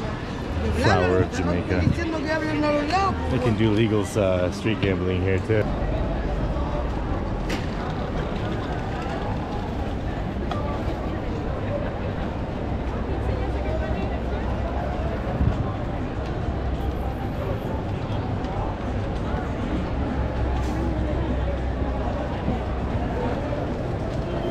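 A crowd murmurs outdoors in the street.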